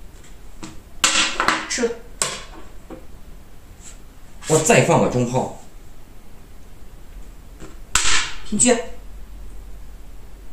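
A game piece clacks down on a wooden board.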